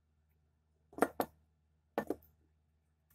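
Glass clinks against a glass beaker.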